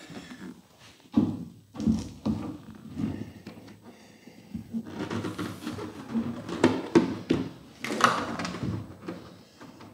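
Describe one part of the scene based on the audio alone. A windshield knocks and scrapes against a car body.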